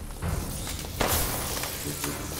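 A pistol fires a single loud shot that echoes.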